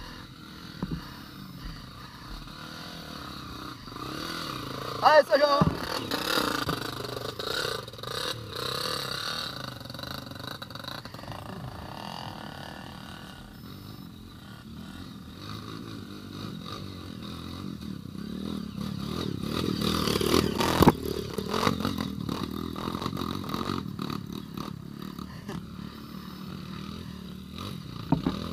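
A dirt bike engine revs and sputters as it climbs a rocky trail.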